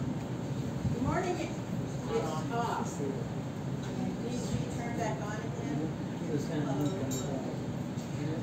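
An elderly woman speaks into a microphone through loudspeakers.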